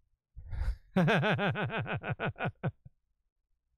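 A middle-aged man laughs heartily close to a microphone.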